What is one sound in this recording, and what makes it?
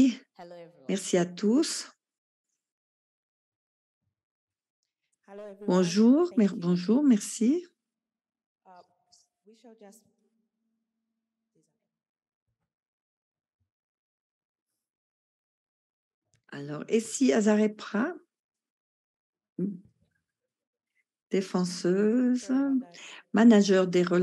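A woman speaks into a microphone in short bursts, with pauses between them.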